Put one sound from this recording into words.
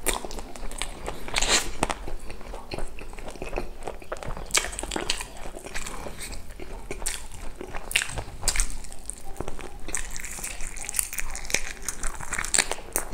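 A man chews food loudly and wetly, close to a microphone.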